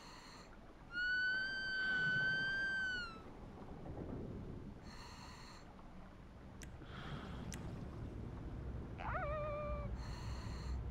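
A killer whale whistles and squeals.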